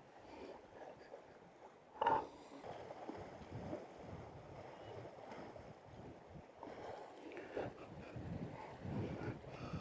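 Wind blows outdoors over open water.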